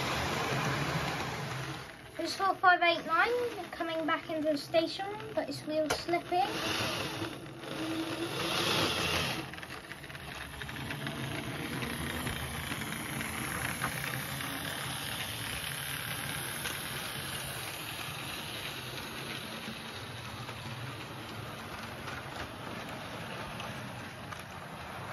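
A model train rattles and hums along its track close by.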